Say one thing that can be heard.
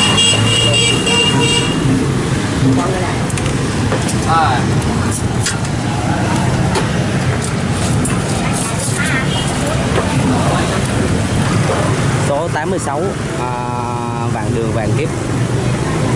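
Motorbike engines hum and drone steadily on a busy street.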